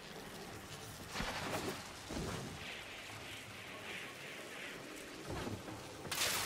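An energy weapon swooshes with a crackling whoosh.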